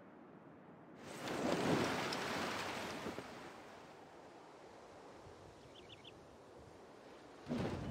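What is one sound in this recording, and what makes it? Waves wash softly against a shore.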